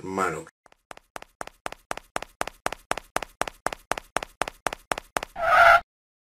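Light footsteps patter quickly and evenly.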